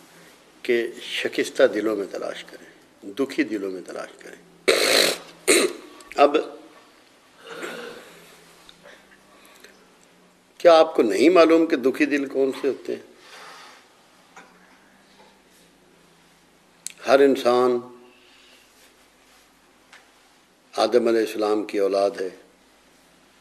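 An elderly man speaks calmly and slowly in short phrases, close to a microphone.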